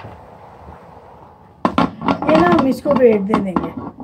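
A metal pressure cooker lid clanks onto a metal pot.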